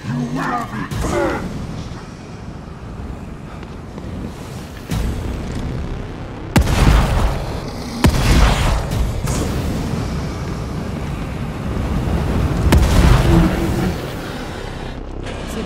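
Fire roars in bursts of flame.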